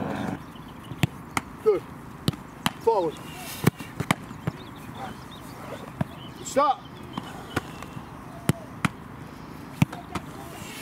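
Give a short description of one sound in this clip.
A football smacks into a goalkeeper's gloves.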